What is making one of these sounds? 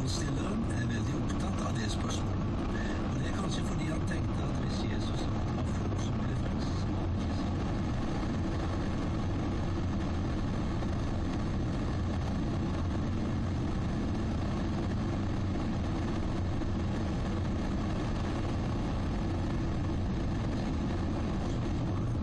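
Tyres roar on the road surface, echoing inside a tunnel.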